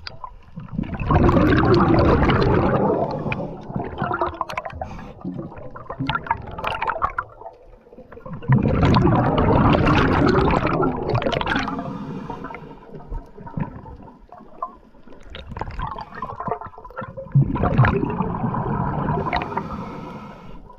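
Air bubbles from a diver's breathing gurgle and rumble loudly underwater in repeated bursts.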